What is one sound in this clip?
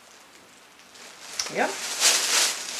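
A plastic bag rustles.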